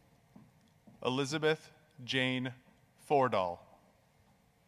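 A man announces over a loudspeaker in a large hall.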